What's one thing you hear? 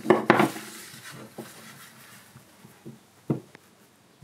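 A small block of wood knocks on a wooden bench.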